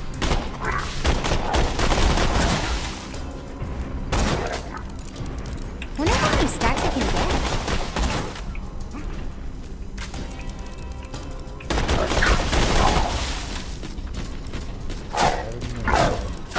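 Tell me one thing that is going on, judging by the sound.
A gun fires in rapid bursts.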